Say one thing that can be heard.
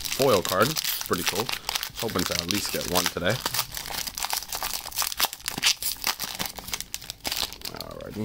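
A foil wrapper crinkles and rustles as hands handle it.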